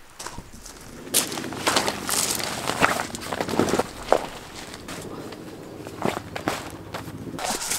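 A fabric ground sheet rustles and crinkles as it is spread out by hand.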